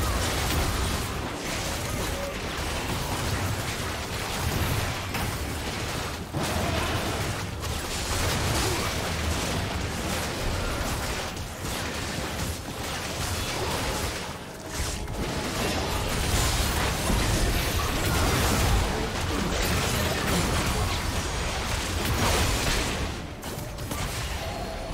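Battle sound effects of magic spells and strikes crackle and burst.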